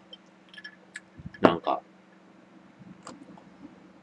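A glass is set down on a table with a soft knock.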